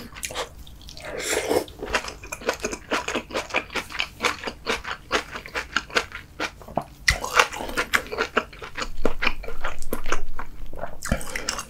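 A man slurps food.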